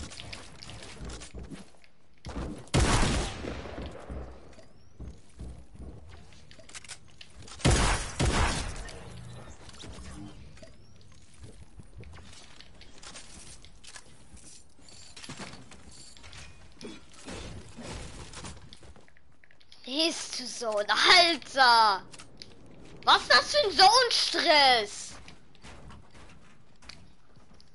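Game building pieces clatter quickly into place.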